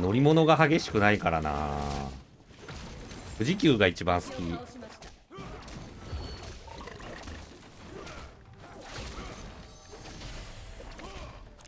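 Game battle effects clash and whoosh.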